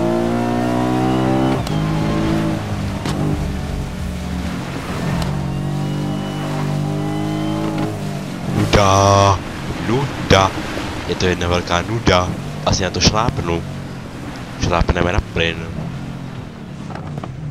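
A car engine roars and revs as it speeds along.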